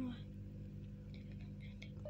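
Fingers tap softly on a touchscreen keyboard.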